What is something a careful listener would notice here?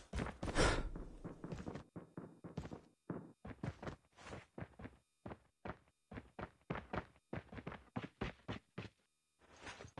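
Footsteps tap on a tiled roof.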